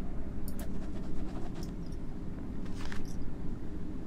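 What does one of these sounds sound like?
A book opens with a soft rustle of paper.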